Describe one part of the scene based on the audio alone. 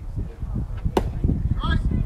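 A baseball bat cracks sharply against a ball once.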